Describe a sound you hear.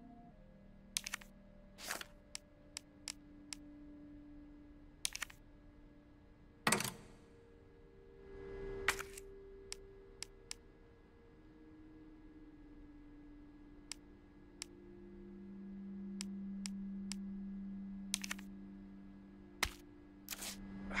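Short menu clicks and beeps sound now and then.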